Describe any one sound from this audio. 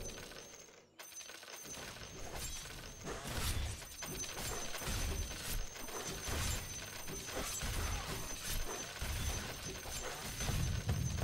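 Game battle effects clash and thump.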